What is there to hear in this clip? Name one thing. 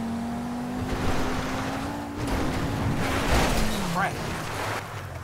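A car crunches and scrapes over rough ground and gravel.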